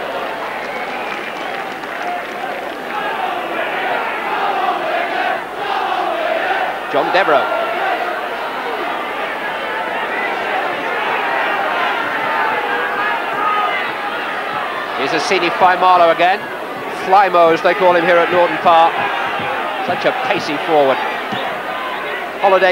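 A large stadium crowd roars and cheers throughout.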